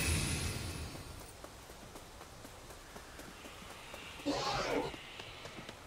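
Quick footsteps run over soft ground.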